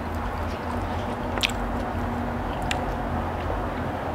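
A young woman sips water from a glass.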